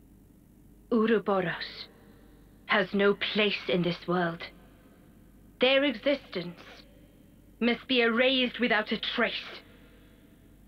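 A woman speaks in a cold, commanding voice, close by.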